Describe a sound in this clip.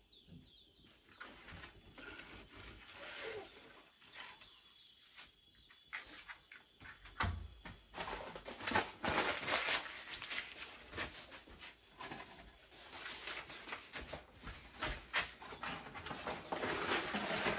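A wood fire crackles and pops in a stove.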